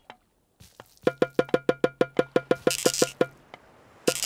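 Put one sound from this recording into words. A hammer knocks in a quick, even rhythm.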